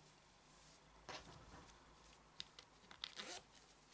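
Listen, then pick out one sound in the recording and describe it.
Fabric rustles and crinkles under hands.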